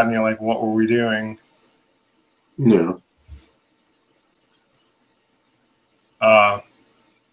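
A man speaks calmly in short bursts, close to a microphone.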